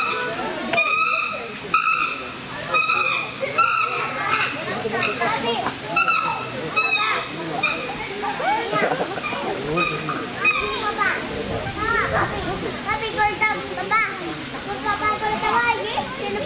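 Chimpanzees shriek and scream loudly, close by.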